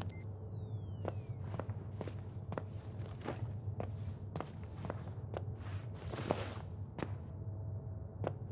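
Footsteps thud slowly and steadily on a hard floor.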